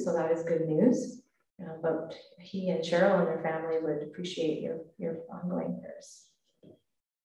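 A woman speaks calmly through a microphone in an echoing hall.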